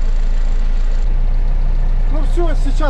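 A tractor engine's rumble deepens and grows rougher.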